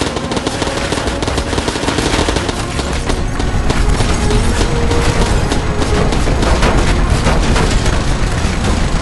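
Explosions boom and roar with crackling fire.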